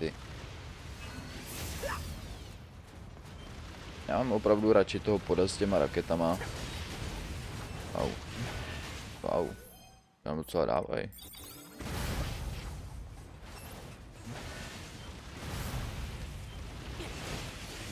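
Blades clash and slash rapidly.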